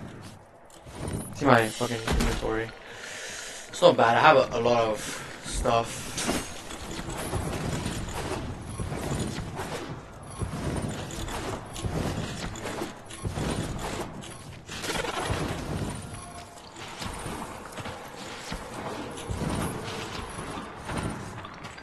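Whooshing game sound effects accompany a gliding character.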